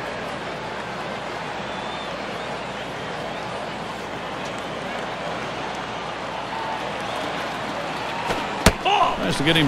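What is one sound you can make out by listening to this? A stadium crowd murmurs steadily throughout.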